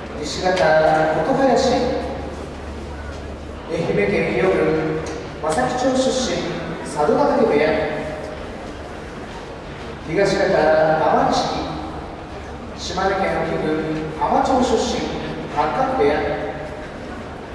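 A man calls out in long, drawn-out chants that echo through a large hall.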